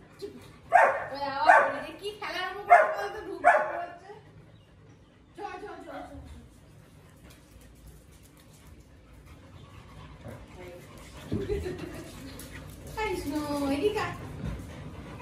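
A Siberian husky howls.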